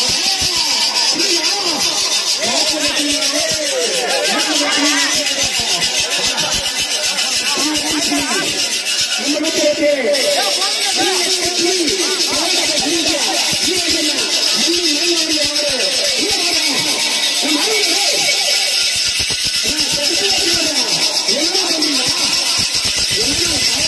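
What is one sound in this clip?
A crowd of young men shouts and talks excitedly close by.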